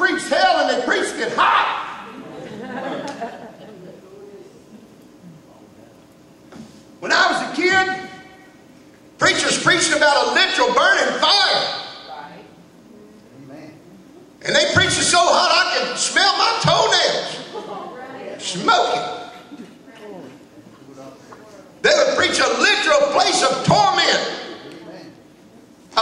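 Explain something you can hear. A man preaches with animation into a microphone, his voice echoing in a large hall.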